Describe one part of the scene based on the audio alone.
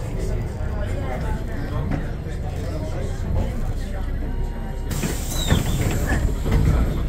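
A bus rattles and clatters over the road.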